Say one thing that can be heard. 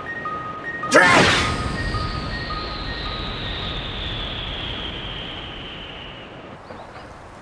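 A whooshing sound falls slowly in pitch as a figure flies off.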